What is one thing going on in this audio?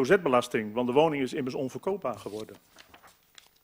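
An elderly man speaks calmly through a microphone in a large echoing room.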